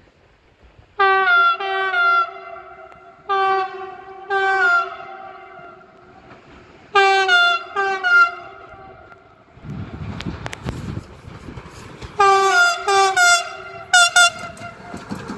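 An electric train sounds its horn in repeated blasts as it approaches.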